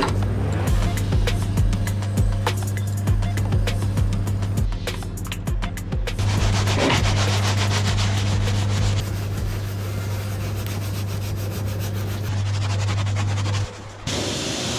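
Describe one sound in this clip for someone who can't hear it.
A brush scrubs a soapy, wet wheel.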